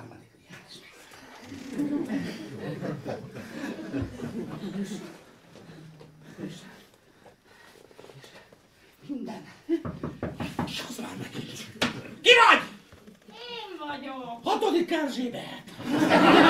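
A middle-aged man speaks with animation in a room with some echo.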